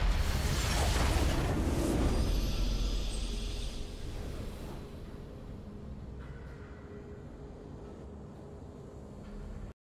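A triumphant game fanfare plays and fades.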